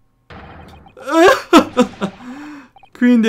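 A young man laughs heartily into a microphone.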